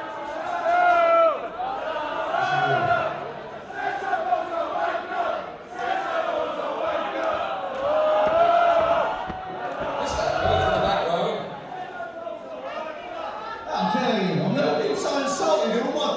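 A man sings loudly.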